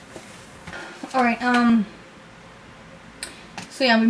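A young woman speaks calmly close by.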